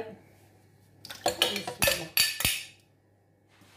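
Sugar pours and rustles from a bowl into a blender jar.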